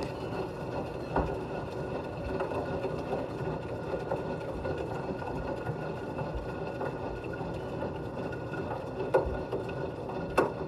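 Soapy water sloshes and churns inside a turning washing machine drum.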